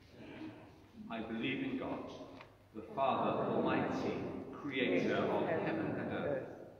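A middle-aged man speaks calmly into a microphone in a large echoing hall.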